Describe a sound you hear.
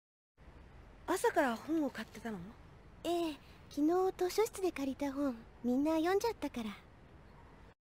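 A young girl speaks calmly.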